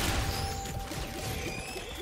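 A laser gun fires with sharp zaps.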